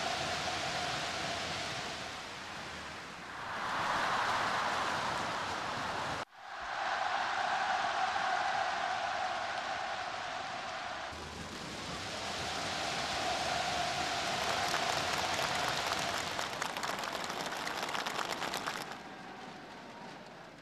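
A large crowd cheers and roars in a stadium.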